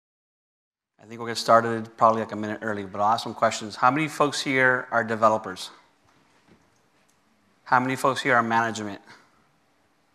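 A man speaks through a microphone in a calm presenting tone.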